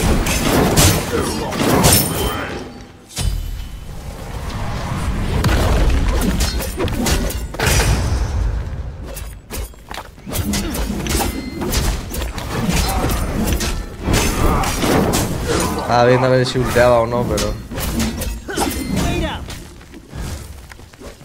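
Video game spells whoosh and clash in quick bursts.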